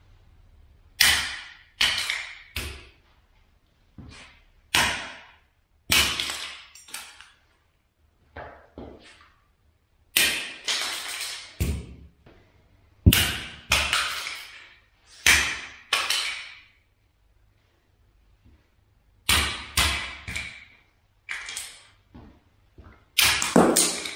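A rubber mallet taps tiles on a hard floor, in sharp knocks that echo in a bare room.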